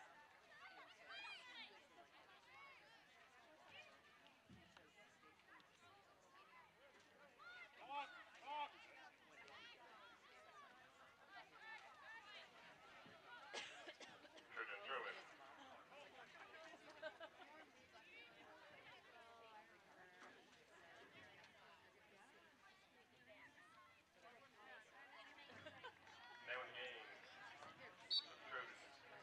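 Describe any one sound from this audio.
Young women shout to each other across an open outdoor field.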